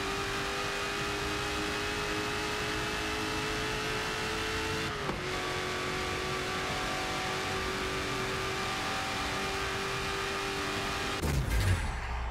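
A car engine roars at high revs as the car accelerates, with a gear shift partway through.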